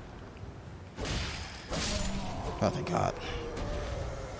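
Heavy blows crash and thud.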